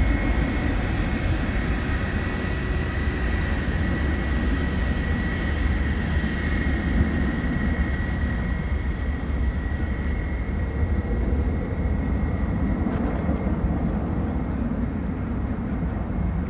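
A jet airliner roars steadily overhead as it climbs away.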